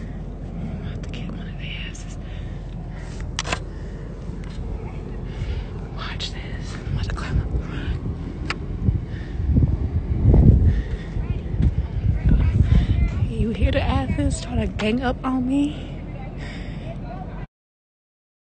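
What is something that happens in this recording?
A young woman talks casually, close to a phone microphone.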